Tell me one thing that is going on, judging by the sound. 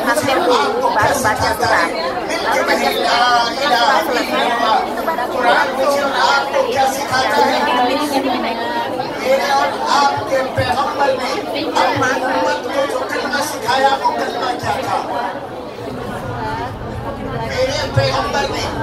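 Many women chatter and talk over each other in a crowded room.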